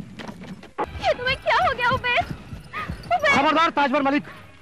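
A woman sings in a high voice.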